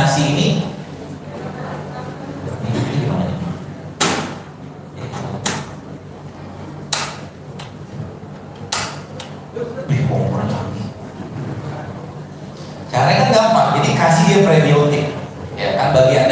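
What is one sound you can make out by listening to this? A man speaks into a microphone over a loudspeaker in an echoing room.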